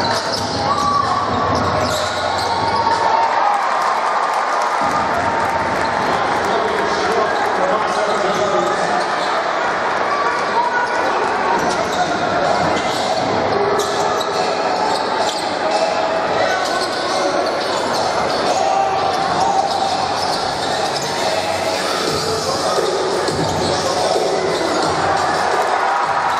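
A large crowd murmurs and cheers in an echoing indoor hall.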